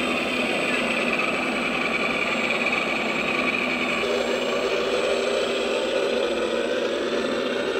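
Model aircraft propellers whir loudly in a steady drone.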